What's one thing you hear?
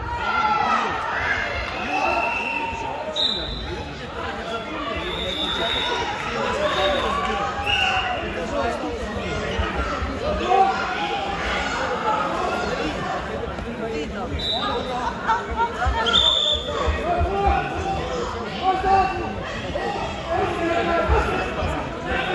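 A crowd of people chatter and shout in a large echoing hall.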